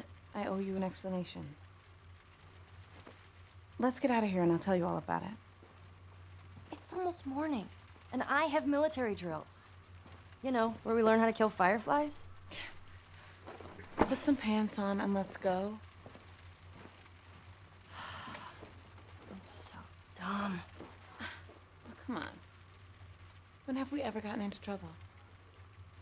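A teenage girl speaks calmly and close by.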